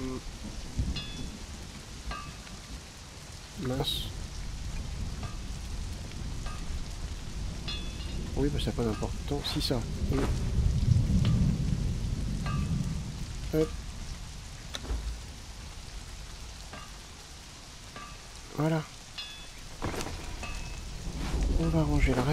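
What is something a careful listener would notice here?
Soft menu clicks and chimes sound now and then.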